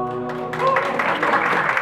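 A choir of women sings together.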